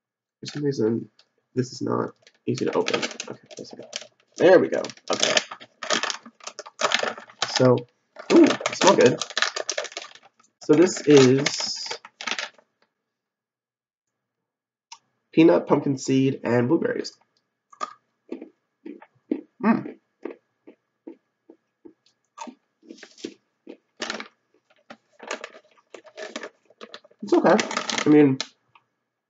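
A plastic wrapper crinkles in a young man's hands.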